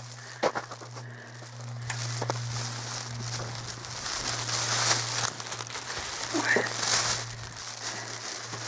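Wind blows outdoors and rushes against the microphone.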